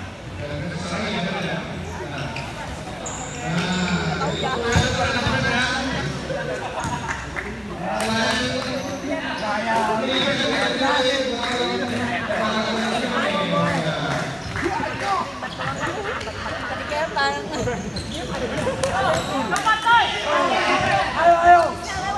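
A crowd of young spectators shouts and cheers loudly in an echoing indoor hall.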